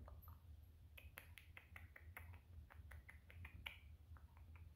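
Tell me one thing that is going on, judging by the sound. A dog's collar tags jingle as it is scratched.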